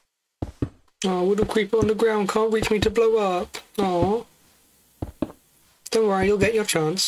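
A young woman talks with animation into a microphone, close up.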